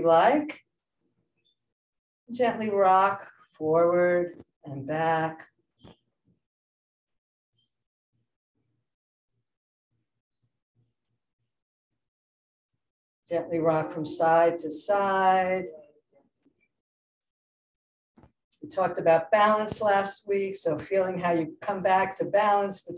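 A middle-aged woman speaks calmly and slowly through a microphone, with long pauses.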